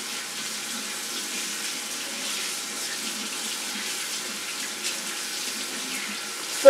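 Dishes clink in a sink.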